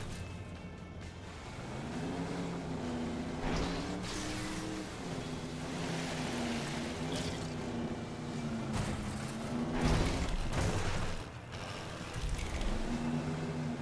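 A boat engine hums and revs steadily.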